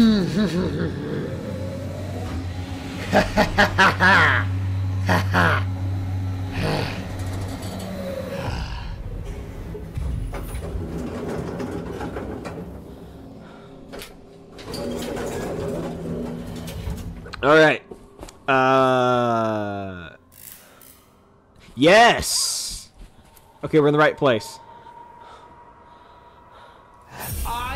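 A young man talks and laughs with animation, close to a microphone.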